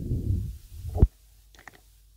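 A sharp knock sounds as a hand touches a turntable.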